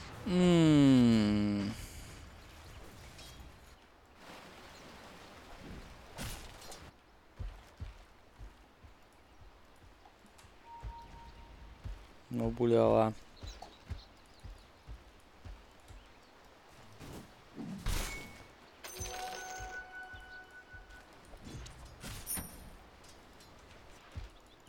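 Video game sound effects chime, whoosh and clash.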